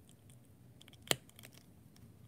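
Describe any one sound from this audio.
A small plastic toy figure clicks as it is handled.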